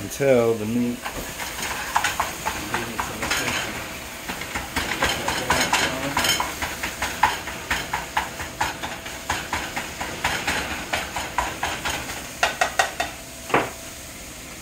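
A spatula scrapes and clatters in a frying pan.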